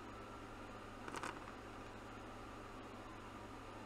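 Dice rattle and roll.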